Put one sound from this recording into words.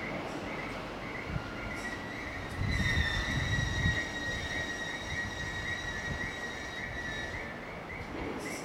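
A train rolls slowly into a station and comes to a stop.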